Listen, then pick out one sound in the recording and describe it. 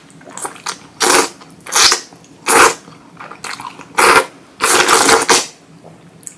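A young woman slurps noodles loudly and close up.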